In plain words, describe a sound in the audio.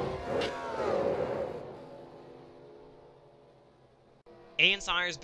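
Race car engines roar past at high speed and fade away.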